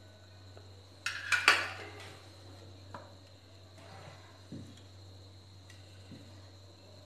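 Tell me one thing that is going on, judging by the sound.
A spatula scrapes and clinks in a pan.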